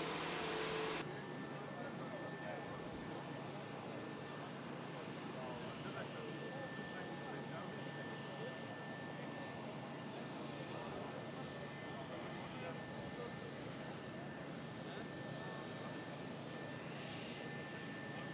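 A crowd of men murmurs and chatters nearby outdoors.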